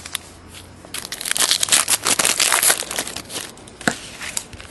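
A foil pack crinkles and rips open.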